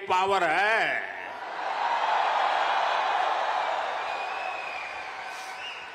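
A large crowd cheers in a big echoing hall.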